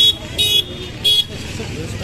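A motor scooter rides past.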